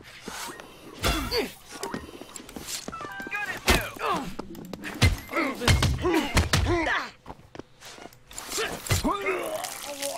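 Heavy blows thud as a bat strikes someone.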